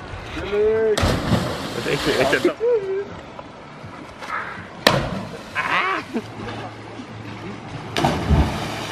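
A body splashes hard into the water below.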